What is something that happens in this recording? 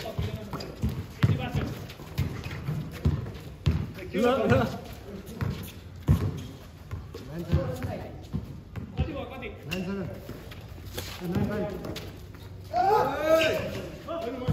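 A basketball bounces on a hard outdoor court.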